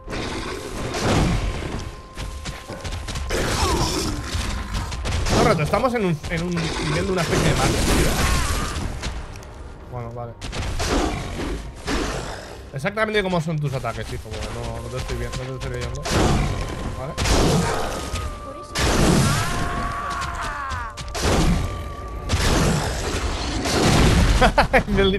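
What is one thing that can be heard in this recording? Heavy blows and sword slashes clash loudly.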